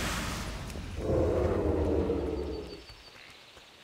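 A magical spell whooshes and hums loudly, then fades away.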